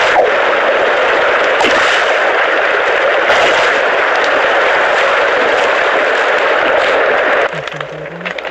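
Waves wash steadily on open water.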